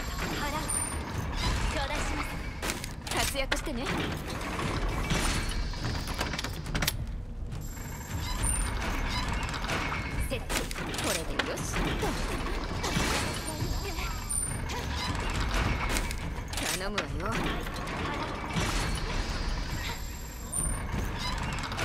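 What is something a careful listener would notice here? Short electronic chimes sound as menus pop up.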